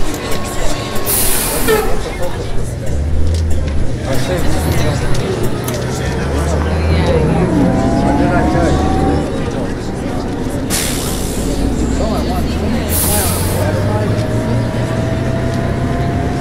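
A diesel city bus engine pulls away and accelerates.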